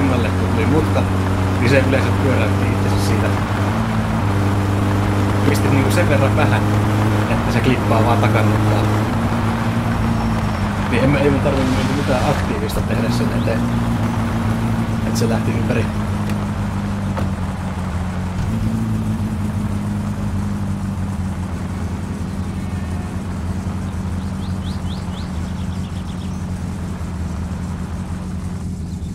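Tyres crunch and rattle on a gravel road.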